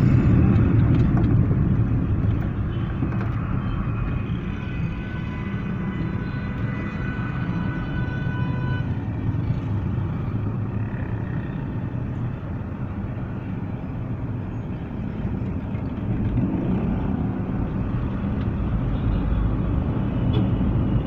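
A car rumbles along a road, heard from inside.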